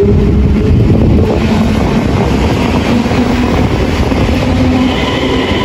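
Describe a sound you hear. A train's motors hum with a steady tone.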